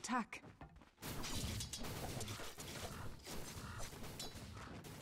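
Game fighting effects clash and crackle.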